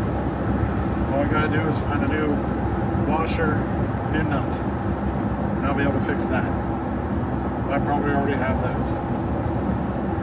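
A man talks with animation close by.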